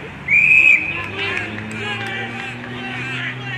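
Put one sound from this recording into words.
Players and onlookers shout and cheer outdoors.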